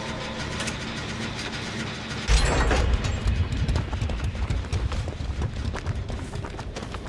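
An engine rumbles and chugs nearby.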